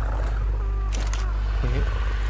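A menu clicks open in a video game.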